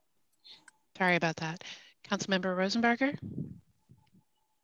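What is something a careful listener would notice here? A woman speaks briefly and calmly over an online call.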